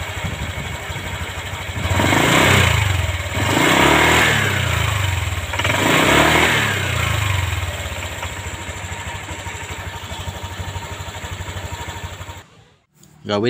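A scooter engine idles with a low rumble close by.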